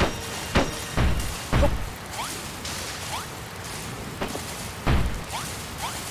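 Blocks thump down heavily.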